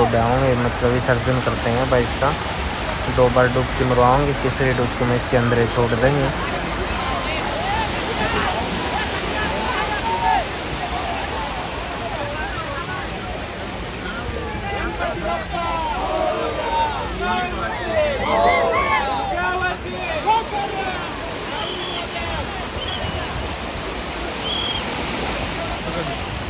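A group of men shout and chant together outdoors.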